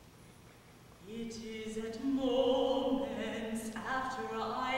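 A young woman sings in a clear, sustained classical voice, echoing in a large hall.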